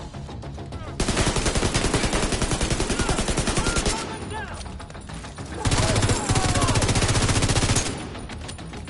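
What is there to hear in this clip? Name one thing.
Rapid automatic gunfire rattles in bursts close by.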